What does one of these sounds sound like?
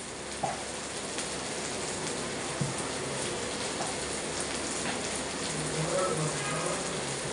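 A ceiling fan whirs steadily.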